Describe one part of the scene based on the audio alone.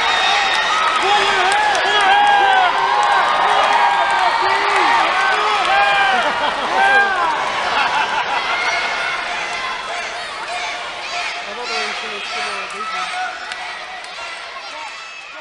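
A large crowd cheers and shouts in a big echoing hall, then slowly quietens.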